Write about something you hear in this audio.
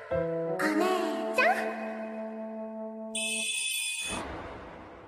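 Music plays with chimes.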